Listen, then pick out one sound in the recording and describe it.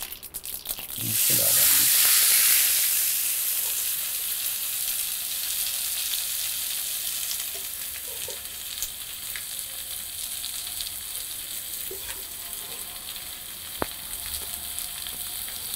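Food sizzles loudly in a hot frying pan.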